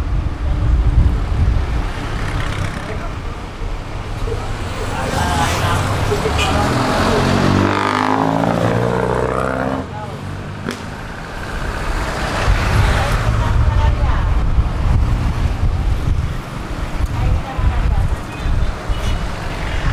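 A bus engine rumbles steadily while driving along a road.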